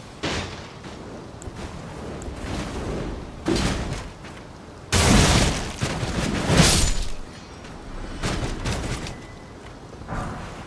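A halberd swings through the air with heavy whooshes.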